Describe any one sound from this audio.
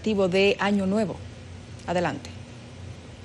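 A woman speaks calmly, close by.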